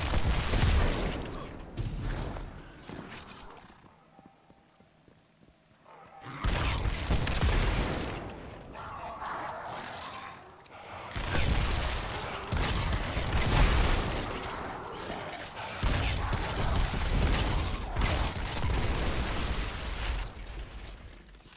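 Energy blasts explode with loud booming bursts.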